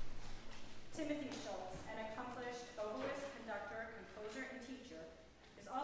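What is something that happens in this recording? A woman speaks calmly through a microphone in an echoing hall.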